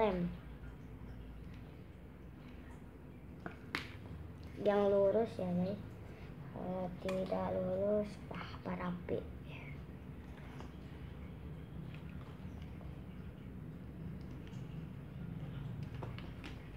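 Cardboard scrapes and taps as hands handle it.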